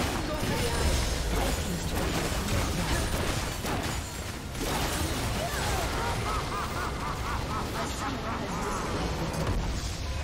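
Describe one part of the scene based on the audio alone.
Game spell effects and attacks crash and clash in a battle.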